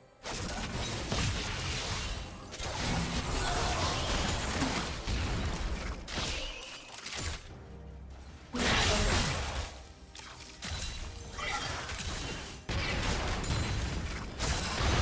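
Computer game spells crackle and burst amid clashing blows in a busy fight.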